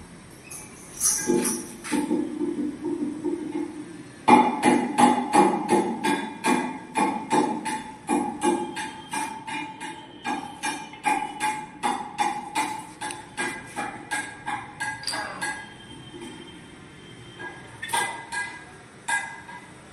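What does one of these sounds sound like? Metal parts clink and rattle in quick, repeated knocks.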